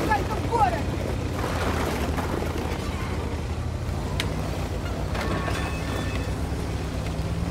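Tank treads clatter on cobblestones.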